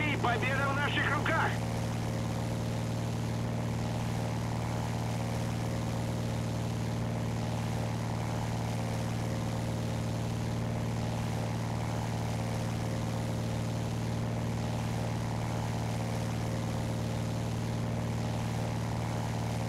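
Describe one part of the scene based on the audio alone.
Twin propeller engines drone steadily and loudly.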